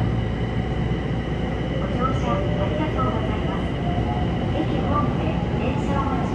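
A train car rumbles and hums steadily as it runs along the tracks.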